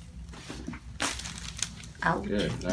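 A neck joint cracks sharply.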